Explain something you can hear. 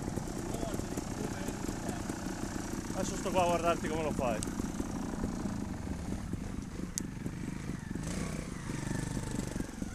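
A trials motorcycle engine revs as the bike climbs a slope outdoors.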